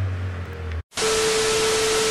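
Television static hisses loudly with a steady whine.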